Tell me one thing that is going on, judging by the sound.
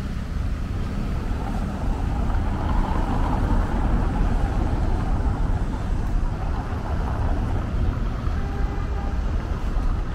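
Car traffic rumbles past.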